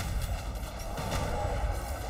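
Electric energy crackles and zaps.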